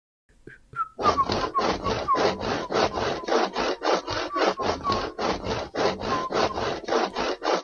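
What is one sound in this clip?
A hand knocks rapidly and repeatedly against wood.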